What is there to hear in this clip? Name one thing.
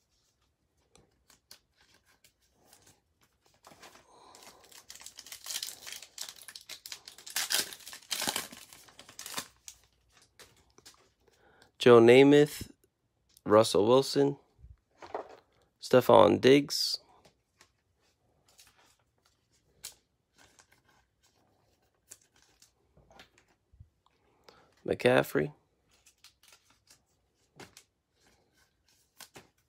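Cards slide softly into plastic sleeves.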